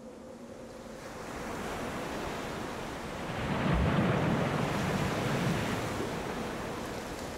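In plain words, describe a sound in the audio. Water churns and splashes roughly.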